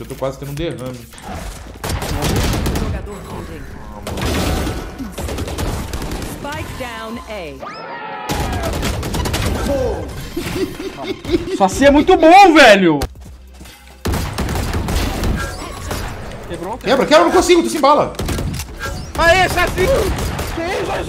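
A young man speaks excitedly into a microphone.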